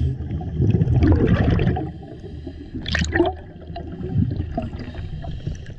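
Water swirls and churns as a swimmer kicks underwater.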